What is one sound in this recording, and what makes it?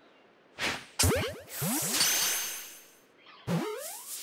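A bright magical chime rings out.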